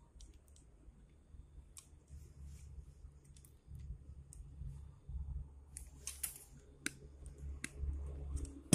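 Pliers click and snip at a wire.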